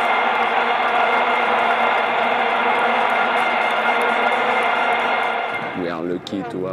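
Plastic stadium horns blare in a steady, buzzing drone.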